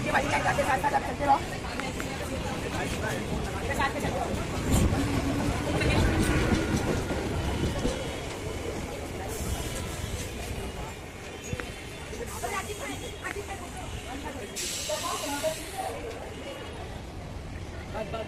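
Many people chatter in the background outdoors.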